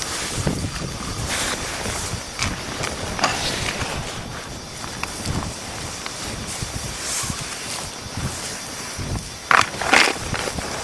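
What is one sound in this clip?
Small stone flakes clatter and crunch.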